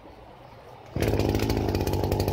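A brush cutter engine suddenly starts roaring loudly and keeps buzzing close by.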